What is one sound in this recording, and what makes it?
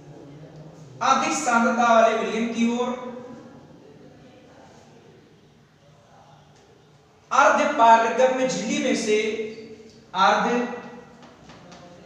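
A man speaks loudly, explaining.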